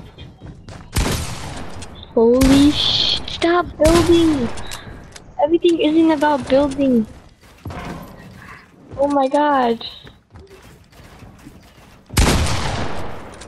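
Video game gunshots blast sharply.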